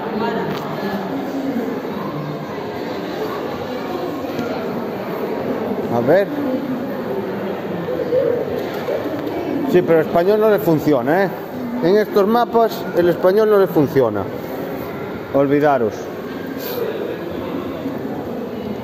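People murmur and chat in a large echoing hall.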